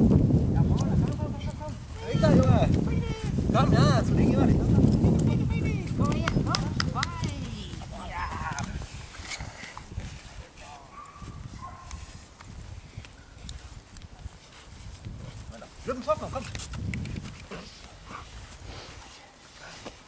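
A dog growls while tugging.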